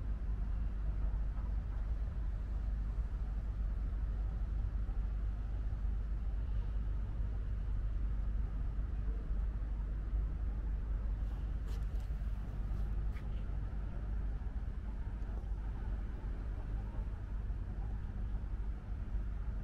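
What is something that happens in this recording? A boat motor rumbles steadily while moving over water.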